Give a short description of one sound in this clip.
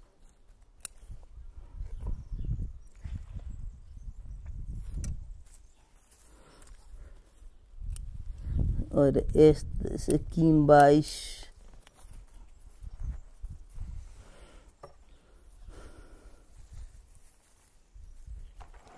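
Leaves rustle as a man handles a small tree.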